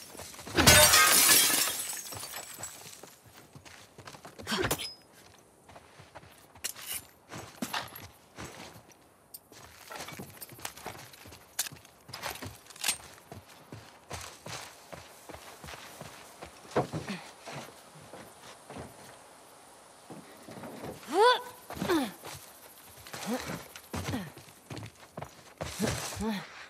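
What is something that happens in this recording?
Footsteps tread quickly.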